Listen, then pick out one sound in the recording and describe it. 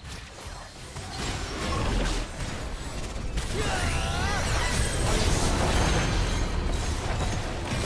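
Game spell effects crackle and burst as characters fight.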